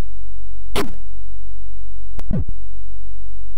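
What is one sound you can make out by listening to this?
A tennis ball is struck with sharp electronic thwacks.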